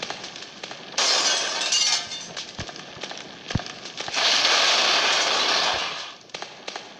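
Fire roars in loud bursts.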